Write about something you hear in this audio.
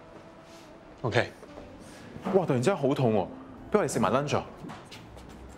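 A young man speaks casually.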